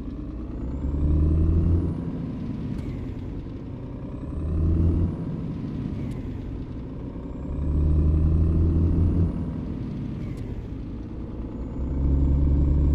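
A truck's diesel engine rumbles and revs up through the gears as it accelerates.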